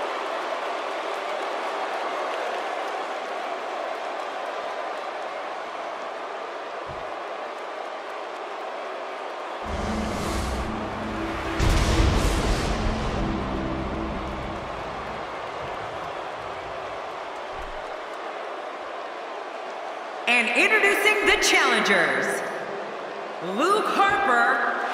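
A large arena crowd cheers.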